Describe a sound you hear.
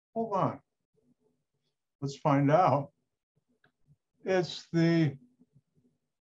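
An older man speaks calmly in short phrases into a microphone, heard through an online call.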